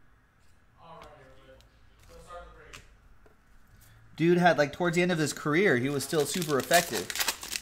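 Cards rustle and slide as they are handled.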